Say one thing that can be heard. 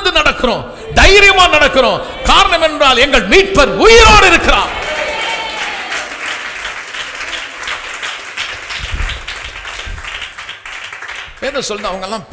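An elderly man preaches forcefully into a microphone, his voice echoing in a large hall.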